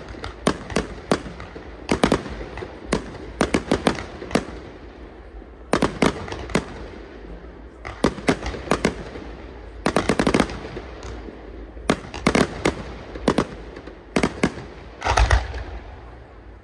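Fireworks burst with sharp loud bangs and crackles, echoing outdoors.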